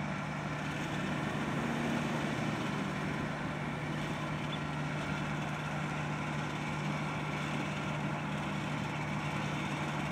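A road paving machine rumbles and whirs steadily.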